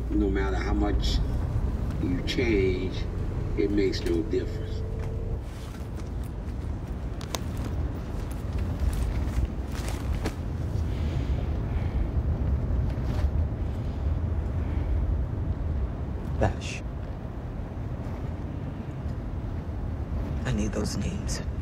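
A car engine hums low and steady.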